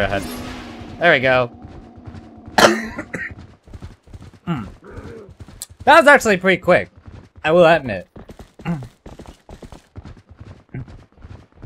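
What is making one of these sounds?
Hooves pound rapidly on the ground.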